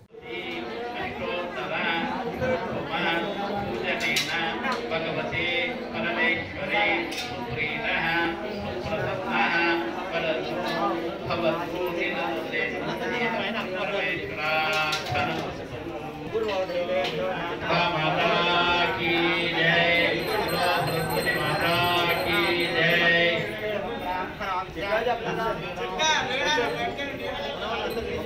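Several men and women talk and murmur close by.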